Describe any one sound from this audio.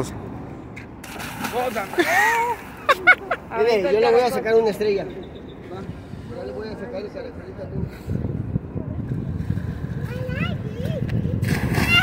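A body splashes loudly into water.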